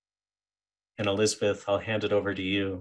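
A man speaks clearly over an online call.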